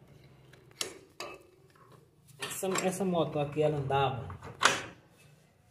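A metal joint clinks as it is turned by hand.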